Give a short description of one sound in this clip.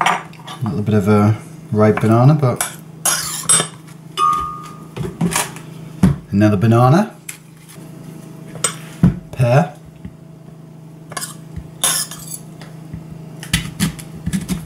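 Pieces of fruit drop with soft thuds into a blender jar.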